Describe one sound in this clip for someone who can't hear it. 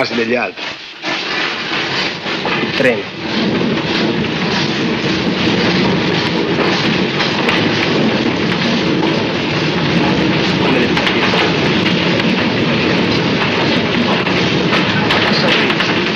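A train rumbles loudly across a metal bridge.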